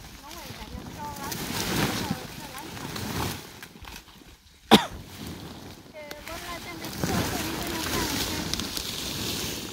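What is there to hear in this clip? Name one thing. Dry corn stalks rustle and crackle as people move through them.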